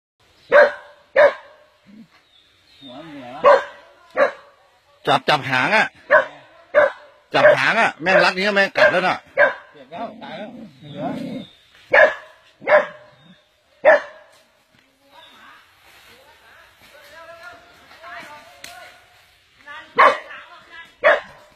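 A dog yelps and whimpers in pain, close by.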